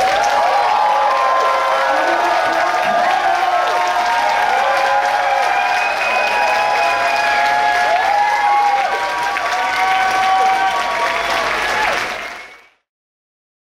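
A crowd cheers and whoops loudly in a large room.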